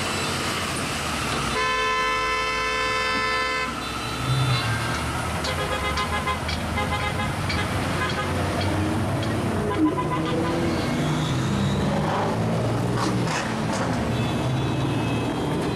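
Car engines rumble as traffic rolls slowly past.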